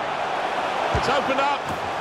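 A football is struck with a sharp thud.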